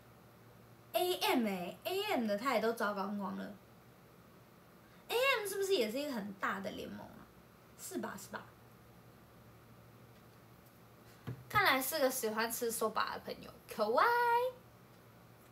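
A young woman speaks close to the microphone in short, lively bursts.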